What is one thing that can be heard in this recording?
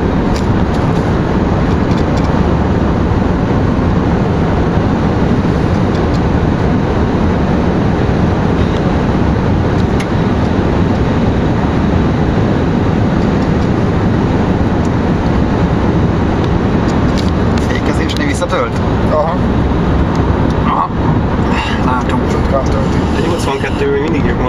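Road and wind noise roar steadily inside a fast-moving car.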